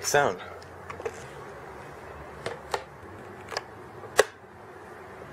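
Switches click on a small electronic box.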